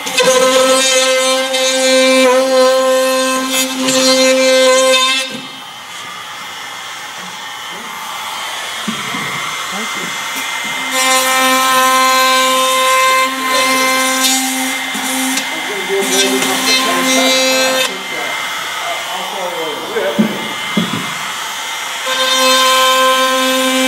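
A power router whines steadily as it cuts wood.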